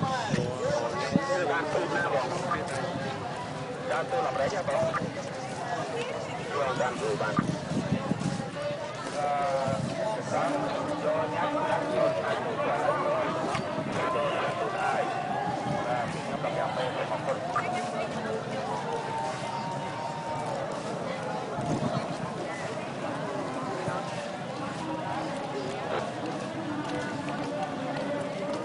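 A crowd of men and women murmurs and talks all around outdoors.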